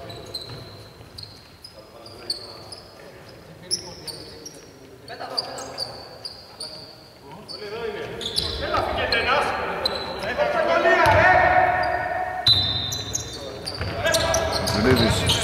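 Sneakers squeak sharply on a hard court, again and again.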